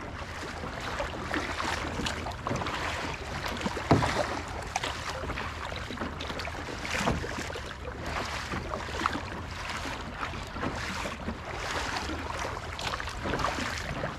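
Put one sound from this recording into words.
A paddle splashes and dips into the water in a steady rhythm.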